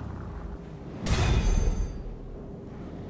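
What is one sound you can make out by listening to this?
A loud whoosh sounds as the car is delivered.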